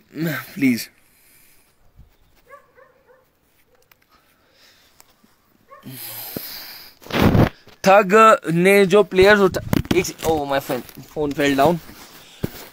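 A young man talks close to a phone microphone, in bursts with pauses.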